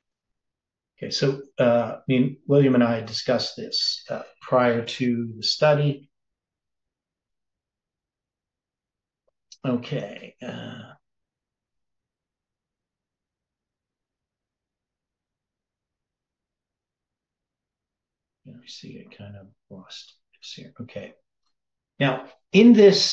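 An elderly man speaks calmly and close to a microphone, in bursts with long pauses.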